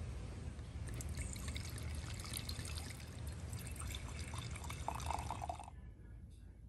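Wine pours and splashes into a glass.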